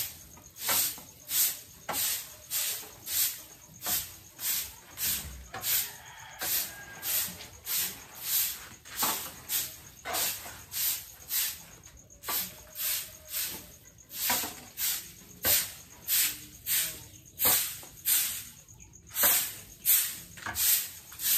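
A broom sweeps a hard floor with quick, rhythmic swishes.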